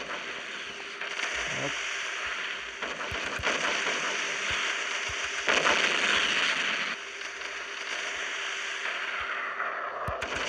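Ship guns fire in heavy booming shots.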